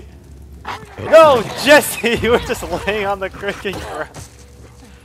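A man grunts and gasps in a struggle.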